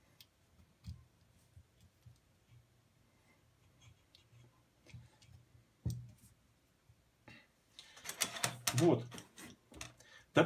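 Metal parts click and clack softly as a jig is adjusted by hand.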